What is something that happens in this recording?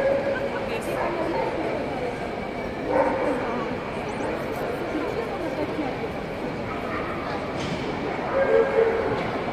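A crowd of people chatters in a large echoing hall.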